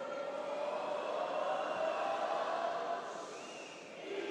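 A young woman shouts triumphantly.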